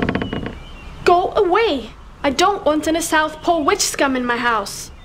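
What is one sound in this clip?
A young woman shouts angrily close by.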